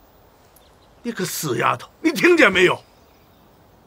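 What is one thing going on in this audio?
A middle-aged man speaks sternly nearby.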